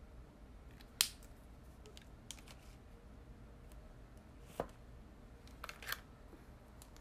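A small plastic cap clicks a few times.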